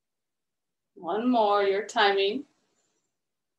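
A woman speaks calmly and softly through a microphone, close by.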